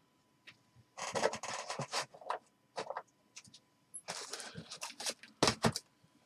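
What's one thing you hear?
Plastic wrap crinkles and rustles.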